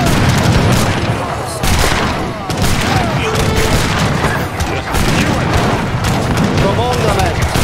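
Cannons boom heavily.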